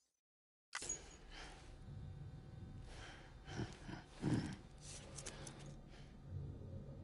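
A man makes low grunting sounds up close.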